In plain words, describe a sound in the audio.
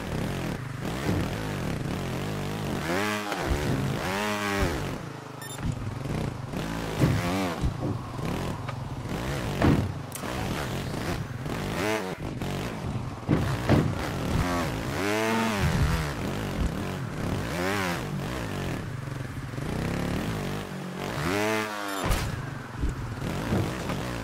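A motorbike engine revs up and down repeatedly.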